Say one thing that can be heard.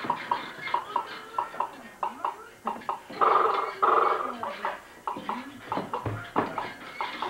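A rocking horse's springs squeak and creak in a quick rhythm.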